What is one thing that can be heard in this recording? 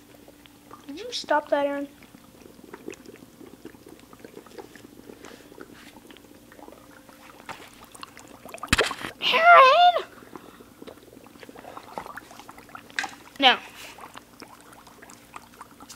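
Dry ice hisses and bubbles in a cup of water.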